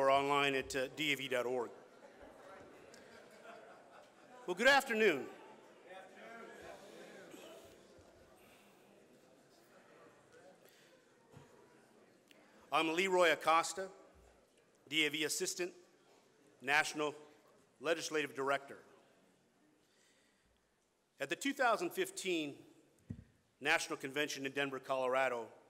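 A man speaks calmly into a microphone over a loudspeaker, in a large echoing room.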